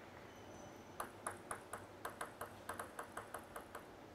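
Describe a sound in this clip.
A table tennis ball bounces repeatedly on a hard surface.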